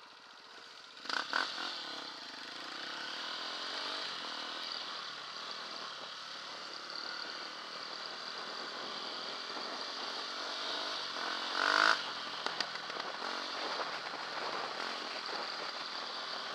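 Dirt bike engines drone steadily while riding.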